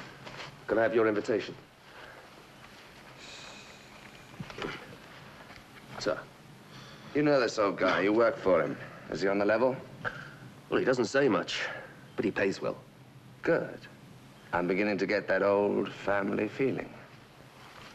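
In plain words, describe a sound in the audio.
A second man answers curtly close by.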